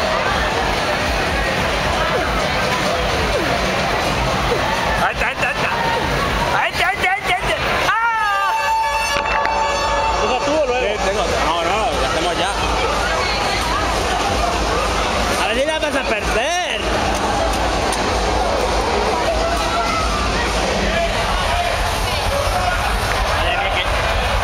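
A crowd of people chatters and shouts in the background.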